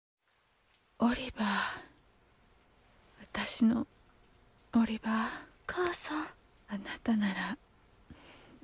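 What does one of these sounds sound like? A woman speaks softly and weakly, close by.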